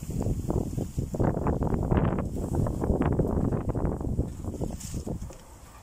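A gloved hand pats and presses crumbly soil in a pot.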